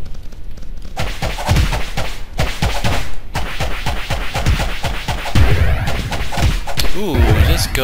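Sword blows land with quick sharp thuds.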